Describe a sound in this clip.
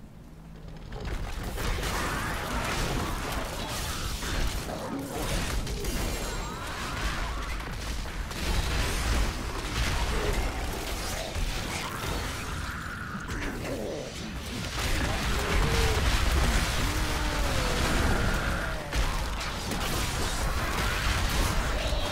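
Magic blasts and explosions crackle and boom in a loud fight.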